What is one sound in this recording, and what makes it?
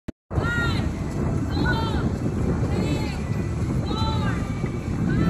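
A woman calls out loudly from a distance.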